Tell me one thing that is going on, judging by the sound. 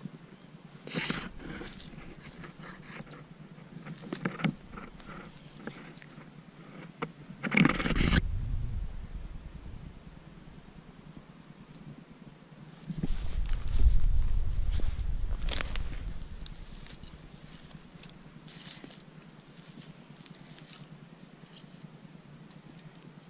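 A knife cuts through a mushroom stem.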